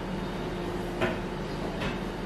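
A plate is set down on a table with a clink.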